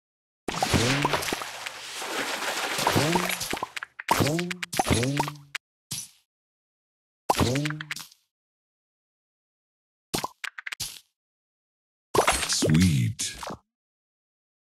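Game sound effects chime and whoosh as candies burst and clear.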